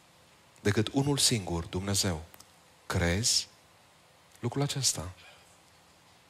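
A man speaks with emphasis through a microphone in a large hall.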